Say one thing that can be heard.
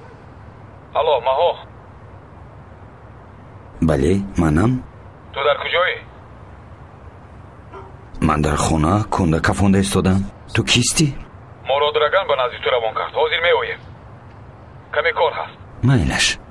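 A voice answers through a phone earpiece.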